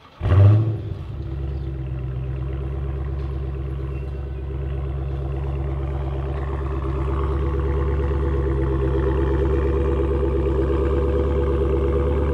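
A car engine idles with a deep, steady rumble from the exhaust.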